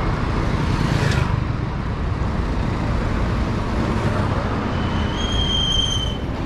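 A motorbike passes close by.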